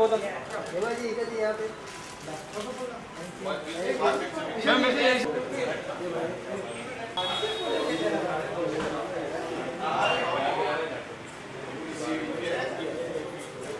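Several men talk and call out loudly nearby.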